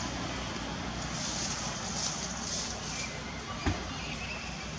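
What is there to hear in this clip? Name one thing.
Leaves rustle as a monkey climbs through tree branches.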